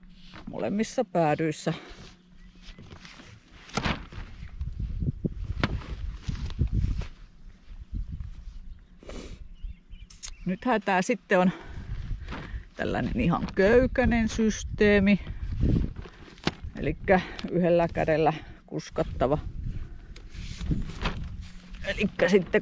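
Plastic sheeting crinkles and rustles under handling.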